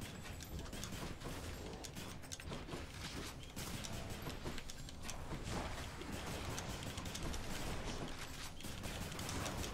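Video game music plays steadily.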